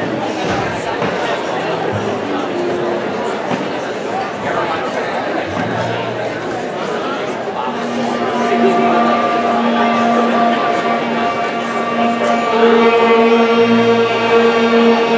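A woman sings through a loudspeaker.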